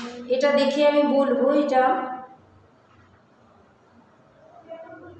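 A woman speaks calmly and clearly, close to the microphone.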